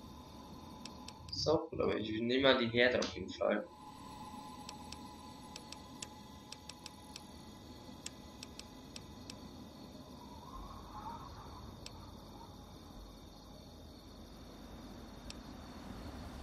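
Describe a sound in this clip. Soft menu clicks tick now and then as a selection moves up and down a list.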